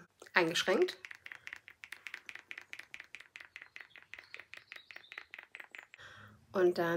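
A small bottle rattles rapidly in a woman's hands.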